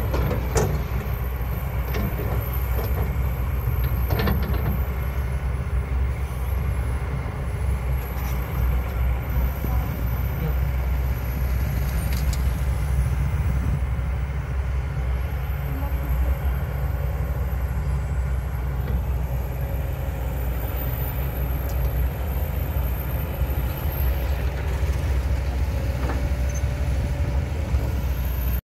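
A diesel excavator engine rumbles steadily outdoors.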